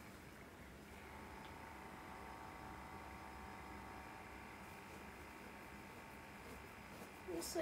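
A small motor hums steadily close by.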